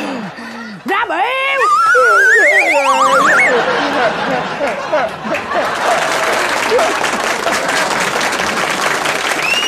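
A young man wails and cries loudly.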